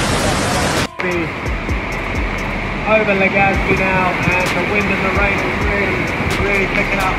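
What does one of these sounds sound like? Heavy rain pours down in strong, gusting wind.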